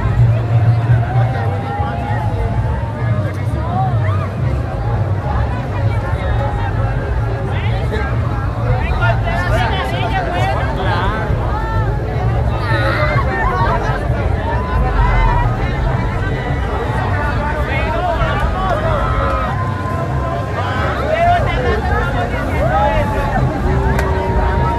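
A large crowd of men and women chatters and cheers loudly outdoors.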